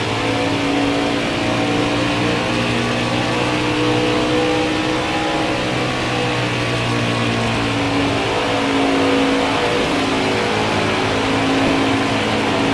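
Tyres hum on the track.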